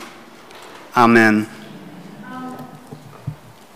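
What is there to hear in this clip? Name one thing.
A man speaks briefly into a microphone in a room with a slight echo.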